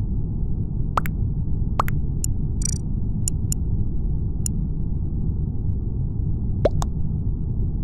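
Short electronic pings sound as chat messages arrive.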